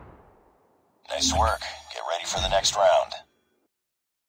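A short electronic victory tune plays.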